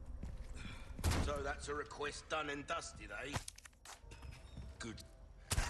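A man speaks casually in a gravelly voice close by.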